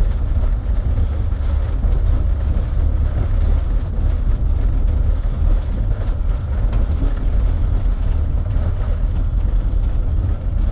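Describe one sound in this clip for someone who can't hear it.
Tyres rumble steadily over cobblestones.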